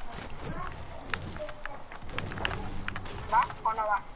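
A pickaxe strikes wood with sharp knocks.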